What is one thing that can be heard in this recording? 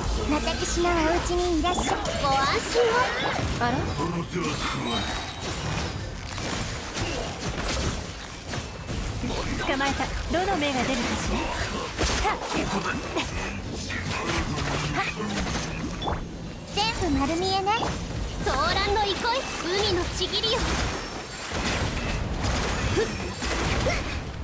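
Magical blasts whoosh, crackle and boom in quick succession.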